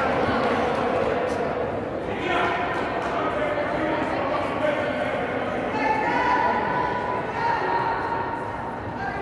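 Players' shoes squeak on a wooden floor.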